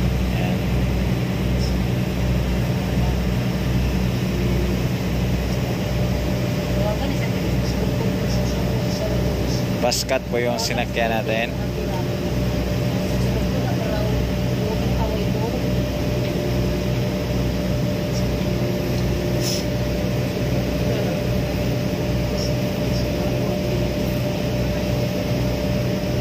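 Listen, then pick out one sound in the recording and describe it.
A ship's engine rumbles steadily with a low throb.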